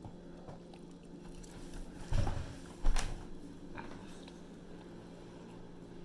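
A teenage boy chews food close by.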